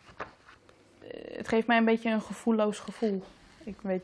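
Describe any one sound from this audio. A young woman reads aloud from a book.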